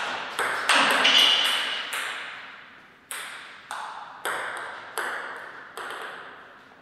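A table tennis ball clicks off paddles and the table in an echoing hall.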